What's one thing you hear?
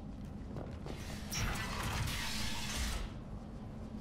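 A sliding door opens with a rushing hiss.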